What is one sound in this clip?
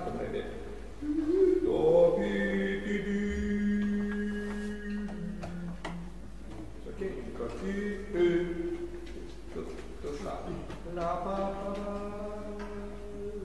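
A man sings a melody to demonstrate.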